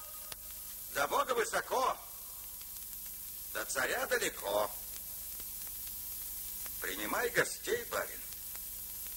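A man speaks forcefully in short bursts.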